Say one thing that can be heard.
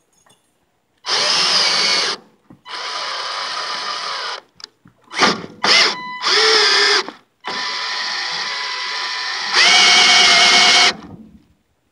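A cordless drill whirs in short bursts, speeding up and slowing down.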